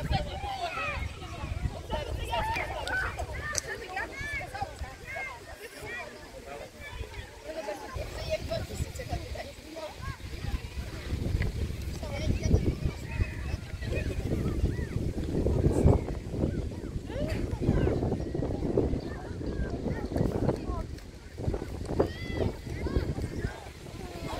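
Young players shout and call to each other across an outdoor pitch.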